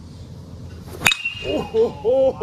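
A metal bat strikes a baseball with a sharp, ringing ping.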